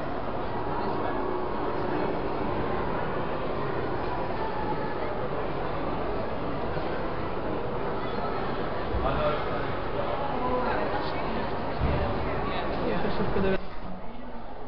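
Many people chatter and murmur in a large echoing hall.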